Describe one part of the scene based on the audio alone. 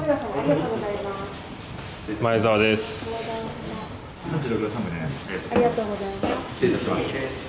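A young man speaks close by in a calm, friendly voice.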